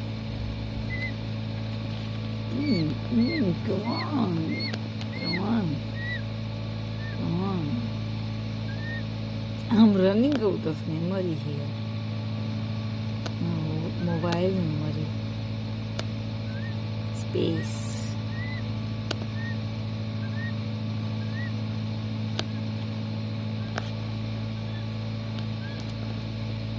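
A chick peeps softly and repeatedly from inside its egg.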